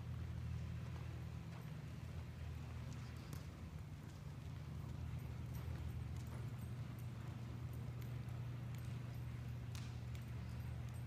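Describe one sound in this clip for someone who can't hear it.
A horse's hooves thud softly on soft dirt at a steady trot.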